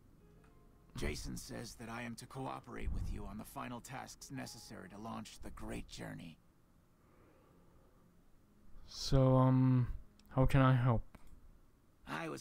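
A middle-aged man speaks calmly and evenly.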